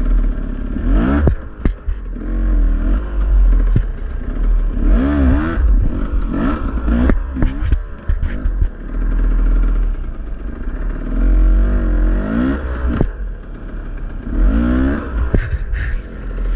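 A motorbike engine revs sharply in short bursts.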